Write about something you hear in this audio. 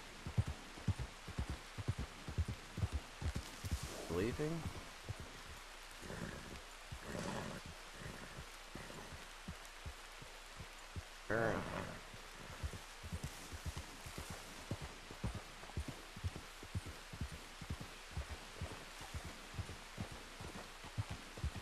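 A horse's hooves thud steadily as it gallops.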